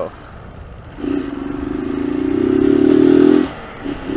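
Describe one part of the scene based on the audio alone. A motorcycle engine revs up, getting louder and rising.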